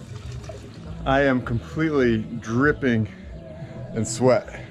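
A middle-aged man talks with animation, close to the microphone.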